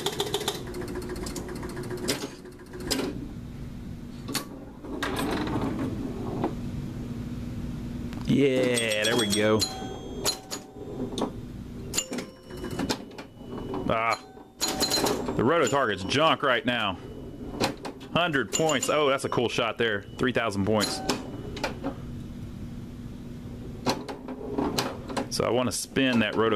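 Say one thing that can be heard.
A pinball machine plays electronic sound effects and tunes.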